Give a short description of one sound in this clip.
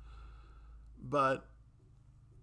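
A middle-aged man speaks briefly and quietly, close to a microphone.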